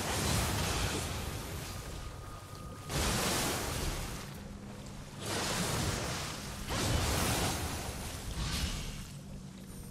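Blades swish and strike in a fast fight.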